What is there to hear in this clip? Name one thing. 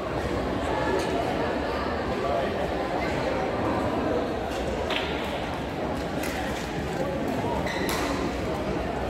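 Shuttlecocks are struck with rackets, with sharp pops now and then.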